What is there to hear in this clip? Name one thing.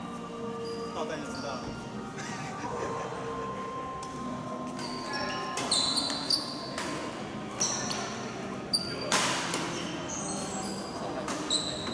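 Rackets strike a shuttlecock with light pops in a large echoing hall.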